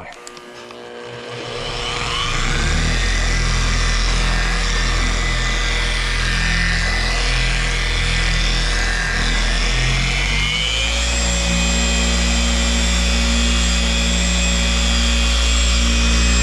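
An electric polisher whirs steadily, its pitch rising partway through.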